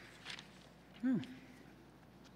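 A microphone thumps as it is handled.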